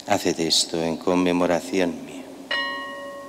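An elderly man chants into a microphone.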